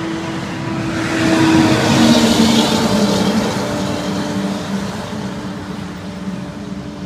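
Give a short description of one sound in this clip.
A heavy truck roars past on the road nearby.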